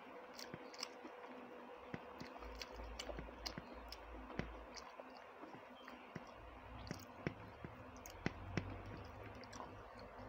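Fingers squish and mix rice and curry on a plate close up.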